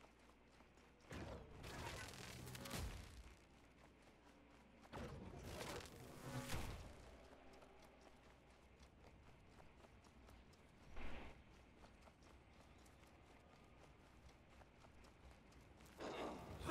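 Footsteps run over stone.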